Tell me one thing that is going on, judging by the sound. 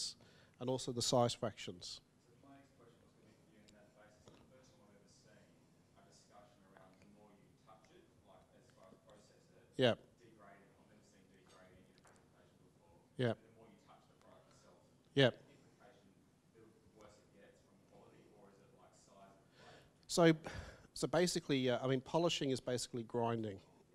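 A man speaks calmly, heard from across a room.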